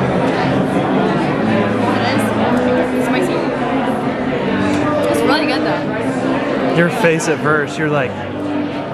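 Many people chatter in a busy room.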